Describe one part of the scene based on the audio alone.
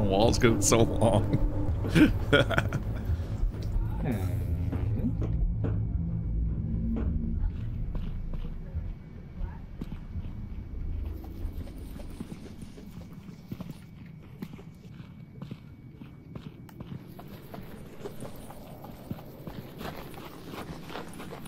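Footsteps tread on hard stone.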